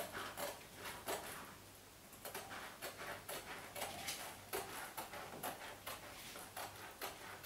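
Hands rub and smooth wallpaper against a wall in short strokes.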